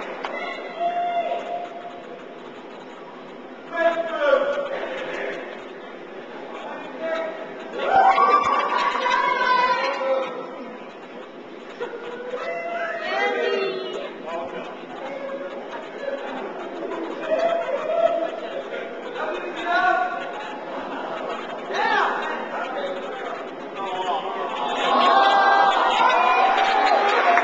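A young woman speaks with animation, heard from across a hall.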